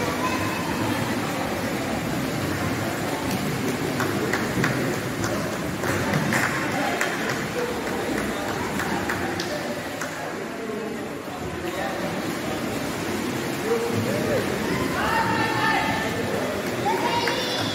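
Swimmers splash through the water in a large echoing hall.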